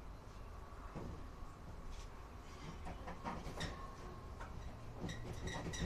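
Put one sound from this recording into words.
Hands knock and clank metal parts inside a clothes dryer cabinet.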